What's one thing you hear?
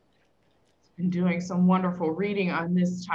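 A woman speaks through an online call, her voice loud and close.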